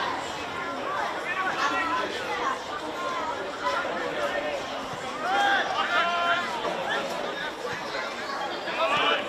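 Young men shout to one another across an open outdoor field.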